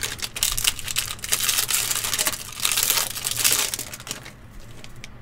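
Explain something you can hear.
A foil wrapper crinkles and tears loudly.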